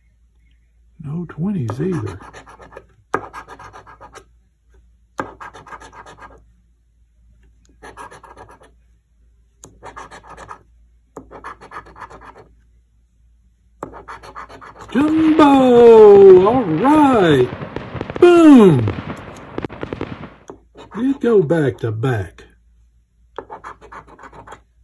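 A coin scrapes across a scratch card in short bursts.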